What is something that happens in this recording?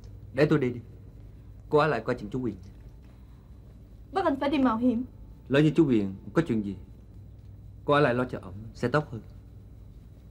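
A young woman speaks in a distressed voice, close by.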